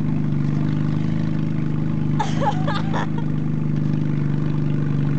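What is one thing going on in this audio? A vehicle engine drones steadily.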